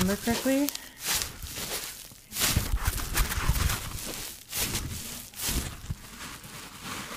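Foam sponges squish and crackle close up as hands squeeze them.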